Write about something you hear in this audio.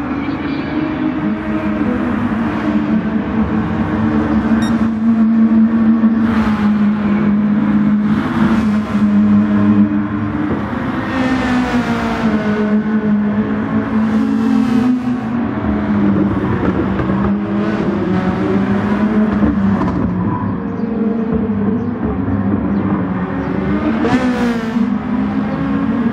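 A racing car engine roars at high revs, rising in pitch and dropping sharply at each gear change.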